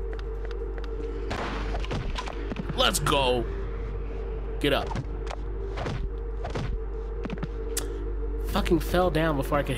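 Punches and kicks land with sharp, quick thuds.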